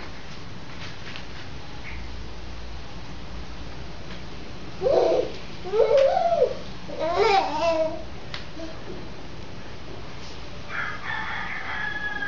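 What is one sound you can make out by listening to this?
A toddler's hands pat on a tiled floor while crawling.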